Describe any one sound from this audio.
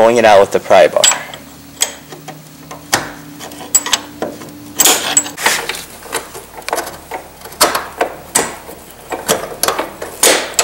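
Metal parts click and clatter by hand.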